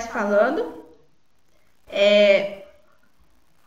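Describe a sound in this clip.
A woman speaks calmly into a microphone in short bursts.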